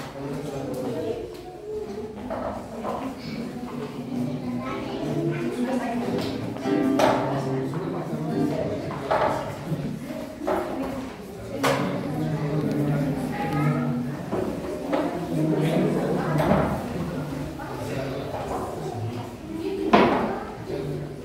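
Several men and women talk quietly nearby in an echoing room.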